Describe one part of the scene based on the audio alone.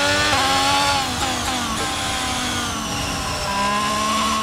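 A Formula One car engine in a racing game drops in pitch as the car brakes for a corner.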